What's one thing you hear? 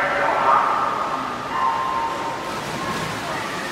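Swimmers plunge into the water.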